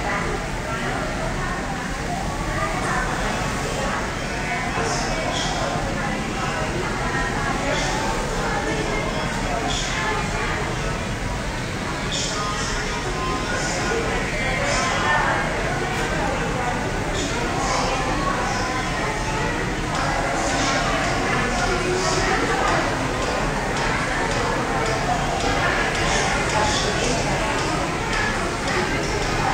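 Electric hair clippers buzz close by.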